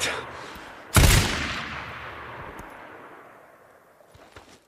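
A rifle fires a single loud shot that echoes and slowly fades.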